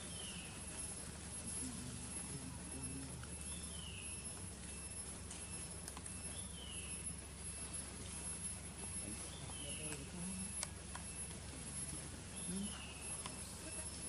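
Monkeys squeak and chatter softly nearby.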